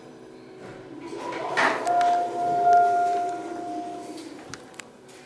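Elevator doors rumble and slide open.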